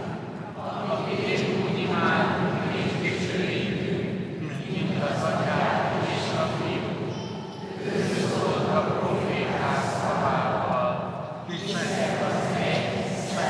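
A large crowd sings together in a large echoing hall.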